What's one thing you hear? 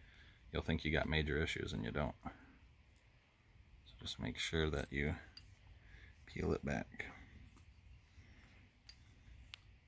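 Metal tools clink softly in a man's hands.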